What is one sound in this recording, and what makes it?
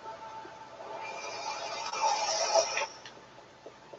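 A crackling energy effect hums and fizzes, then cuts off.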